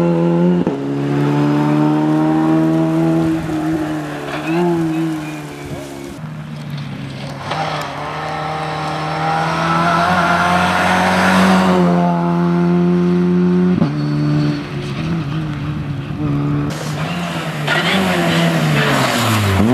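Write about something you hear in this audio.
A small four-cylinder rally car accelerates hard on tarmac, its engine climbing through the gears.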